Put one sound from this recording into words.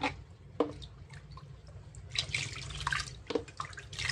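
A plastic dipper scoops and pours water in a basin.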